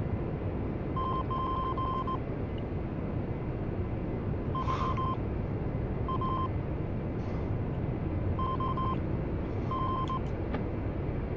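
A cockpit warning tone beeps in short bursts.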